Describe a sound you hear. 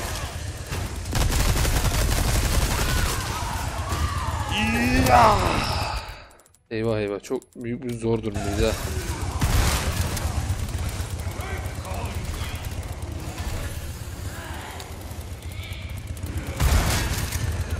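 A gun fires loud shots.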